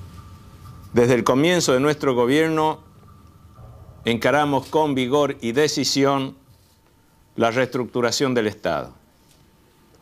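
A middle-aged man speaks calmly and formally into a close microphone.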